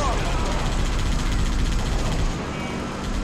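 A mounted machine gun fires a rapid burst.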